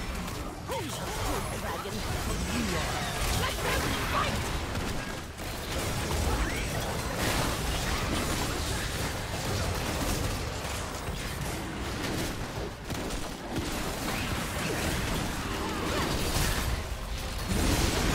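Video game spells whoosh, burst and crackle during a busy battle.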